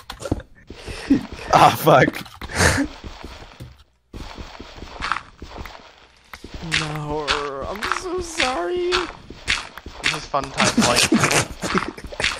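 Blocks crack and crumble as a pickaxe digs, over and over.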